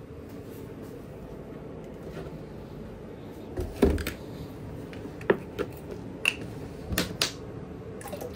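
Plastic oil bottles knock and clatter against each other.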